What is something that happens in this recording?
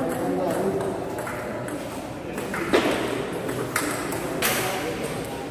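A table tennis ball clicks sharply against paddles and the table.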